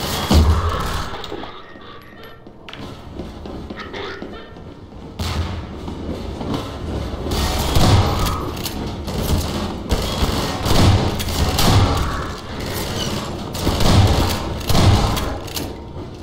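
Shotgun blasts boom loudly, one after another.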